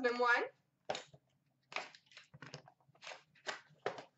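A small cardboard box rustles as hands handle it.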